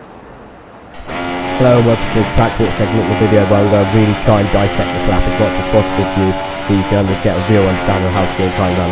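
A racing car engine roars at high pitch and changes gear.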